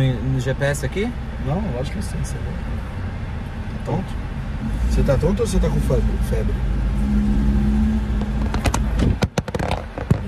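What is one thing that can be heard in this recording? A car engine hums steadily with low road rumble.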